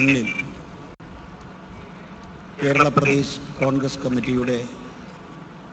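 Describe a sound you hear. A middle-aged man speaks calmly into a microphone in short phrases.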